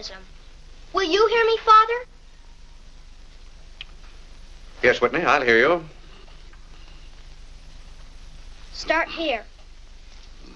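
A boy speaks in a high young voice.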